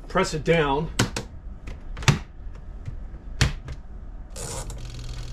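A stove knob clicks as it is turned.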